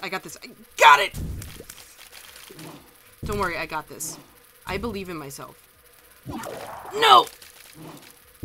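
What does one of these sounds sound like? A cartoonish monster groans and gurgles in bursts.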